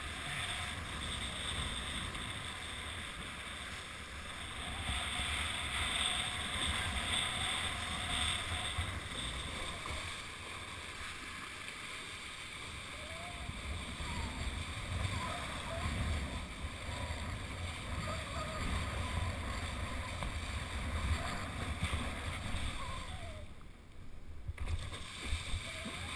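Choppy water splashes and rushes past a board.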